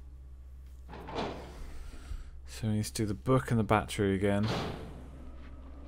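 A heavy metal door creaks slowly open.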